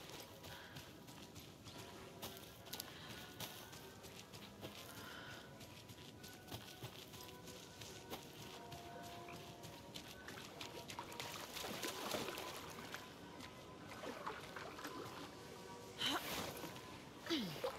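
Footsteps rustle through undergrowth.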